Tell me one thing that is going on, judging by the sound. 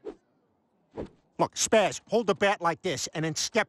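A man speaks loudly with animation.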